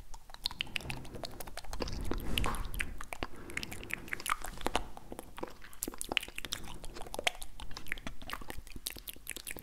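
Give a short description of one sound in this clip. Lips smack and click close to a microphone.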